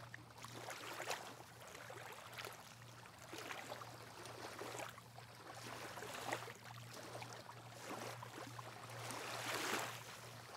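Small waves lap gently against the shore and rocks.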